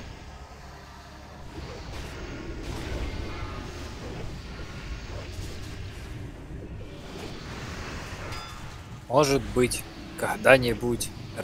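Magic spells crackle and boom amid a clash of combat.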